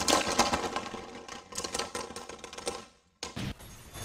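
Spinning tops whirr and clash against each other in a plastic arena.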